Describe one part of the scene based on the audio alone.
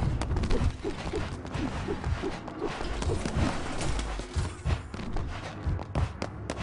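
Footsteps thud at an even pace.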